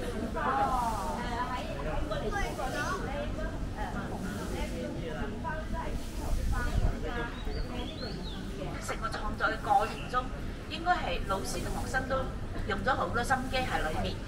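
A middle-aged woman speaks with animation to a group outdoors.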